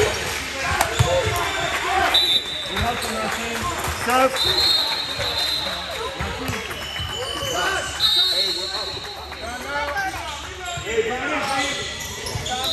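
Children's voices chatter and call out in an echoing gym.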